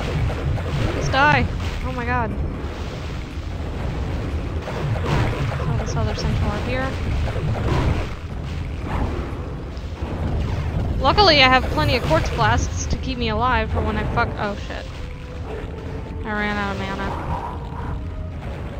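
A young woman talks casually into a microphone.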